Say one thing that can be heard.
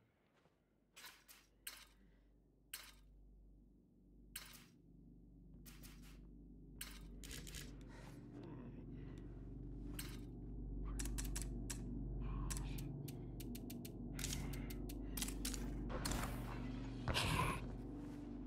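Menu clicks tick quickly and sharply.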